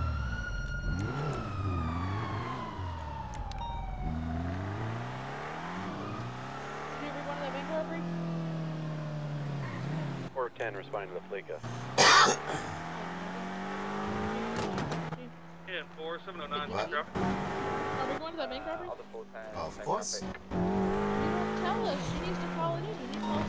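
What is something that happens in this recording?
A car engine revs and roars as a car speeds along a road.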